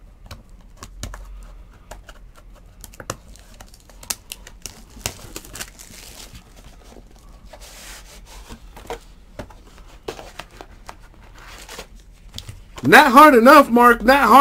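Cardboard boxes are handled, tapping and rustling close by.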